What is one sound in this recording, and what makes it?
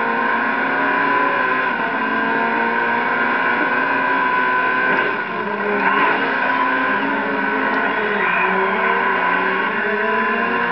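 Racing car engines roar steadily from a loudspeaker, rising and falling in pitch.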